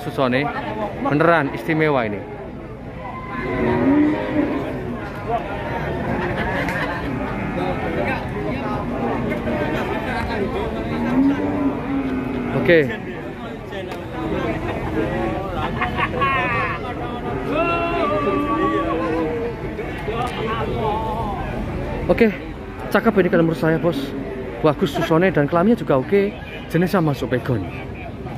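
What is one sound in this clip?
A crowd of men chatter all around outdoors.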